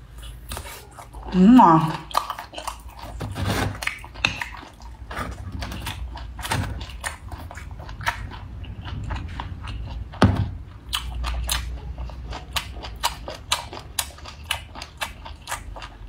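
A woman slurps and smacks her lips loudly while eating, close by.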